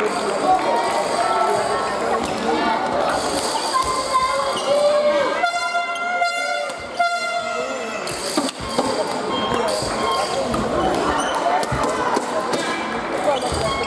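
Rackets strike a shuttlecock back and forth.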